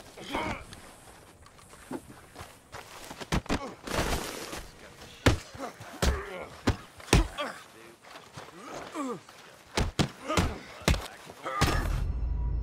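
A man grunts and groans while fighting.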